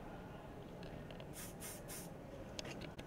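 Hairspray hisses in short bursts.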